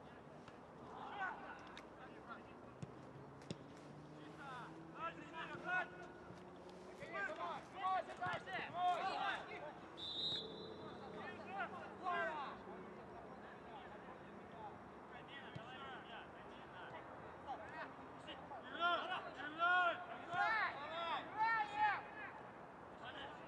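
Football players shout to each other across an open outdoor pitch.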